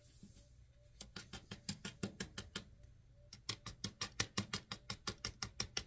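A sheet of paper is tapped rapidly to shake off loose grains.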